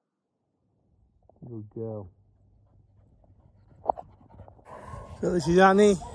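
A dog runs across grass toward the listener.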